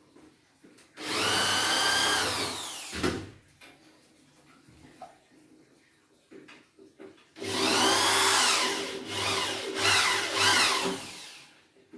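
A cordless drill whirs in two bursts, speeding up and slowing down.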